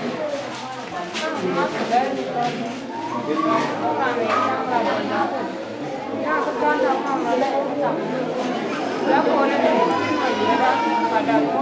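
A woman speaks out loudly nearby.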